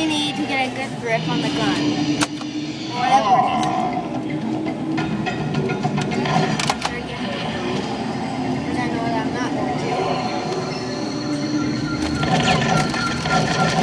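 An arcade game plays music and sound effects.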